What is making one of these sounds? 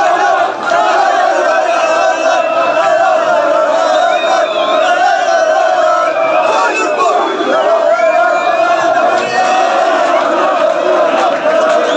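A crowd of men chants and shouts loudly close by.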